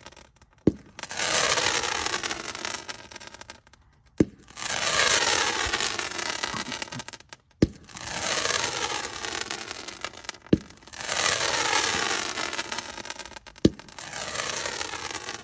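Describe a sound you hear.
Firework rockets whistle loudly as they rise, each one falling in pitch.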